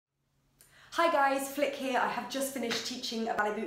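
A young woman speaks brightly and with animation, close to the microphone.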